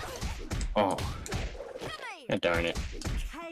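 Punches and slashes land with sharp hits in a video game fight.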